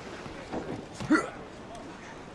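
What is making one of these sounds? A man lands with a thud on wooden planks.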